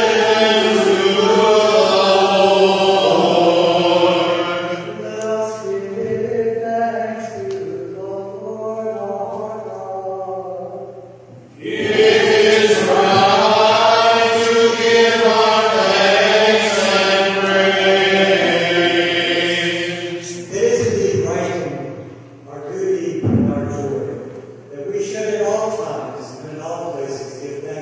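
A woman sings slowly through a loudspeaker in a large echoing hall.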